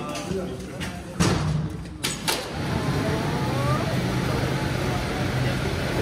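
Electric motors hum loudly and steadily.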